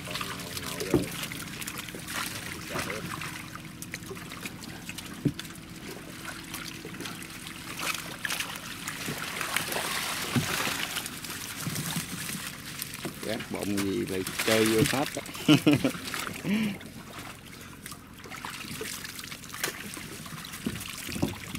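Water splashes and pours as a net is lifted.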